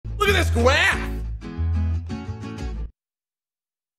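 A man shouts excitedly into a microphone.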